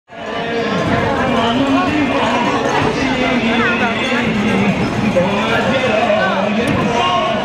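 A crowd of men chants loudly outdoors.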